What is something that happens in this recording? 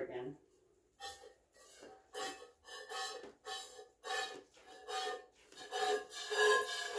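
Milk squirts into a metal pail in a steady rhythm.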